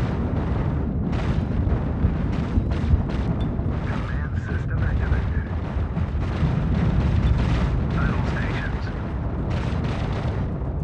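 A low engine rumble drones steadily.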